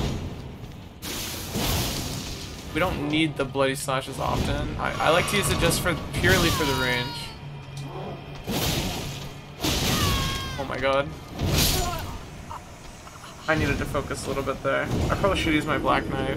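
Heavy blades swing and strike with loud impacts.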